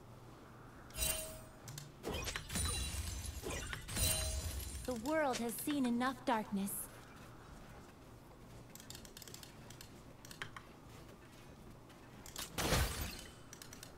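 Spells and sword hits from a video game crackle and whoosh in short bursts.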